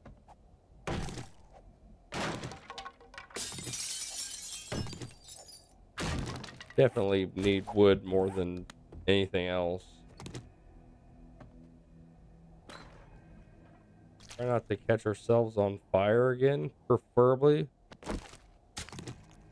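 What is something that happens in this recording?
An axe chops into wood with sharp, hollow knocks.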